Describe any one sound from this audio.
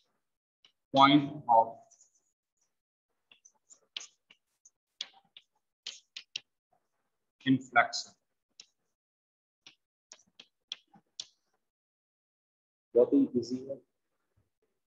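A man speaks calmly in short bursts.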